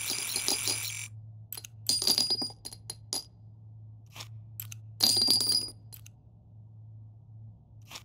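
Small metal cartridges clink and rattle against each other.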